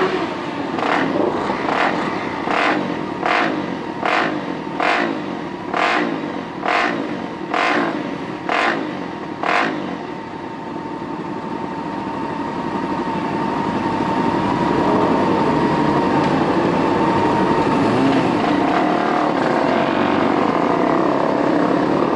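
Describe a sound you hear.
A motorcycle engine idles close by with a steady rumble.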